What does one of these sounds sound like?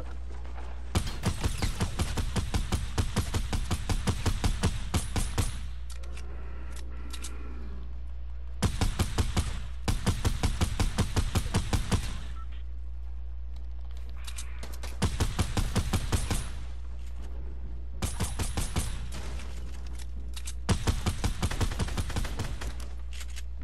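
A video game assault rifle fires in rapid bursts.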